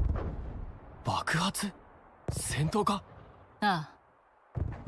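A young man speaks urgently.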